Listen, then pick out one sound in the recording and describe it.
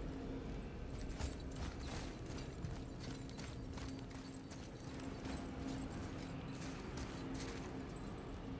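Footsteps crunch on gravelly ground.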